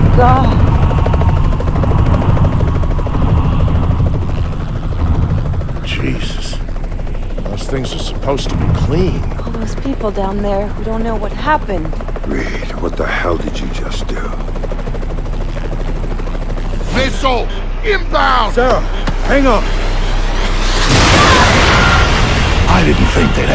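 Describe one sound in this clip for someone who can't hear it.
A helicopter engine drones steadily in flight.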